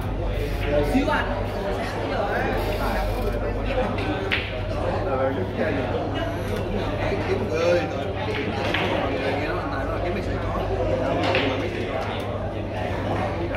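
Several men talk at once in a busy, echoing room.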